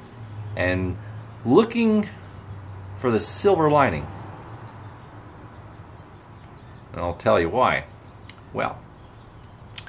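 A middle-aged man talks calmly and close to the microphone, in short bursts with pauses.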